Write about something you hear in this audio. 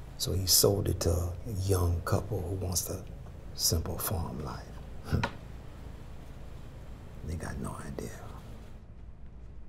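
An elderly woman speaks quietly nearby.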